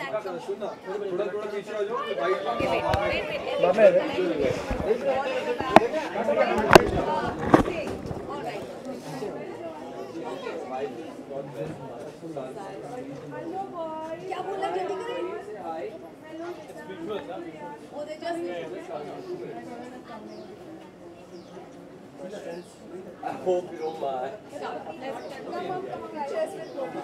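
A crowd of adults and children chatter nearby.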